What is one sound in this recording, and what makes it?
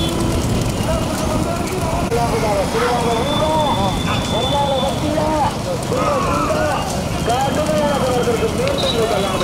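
Men shout loudly outdoors.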